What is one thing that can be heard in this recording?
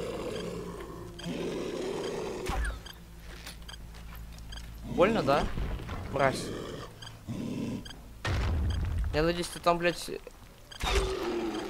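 A crossbow fires with a sharp twang.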